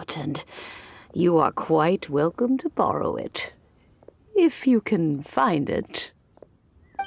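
An elderly woman speaks in a warm, amused tone.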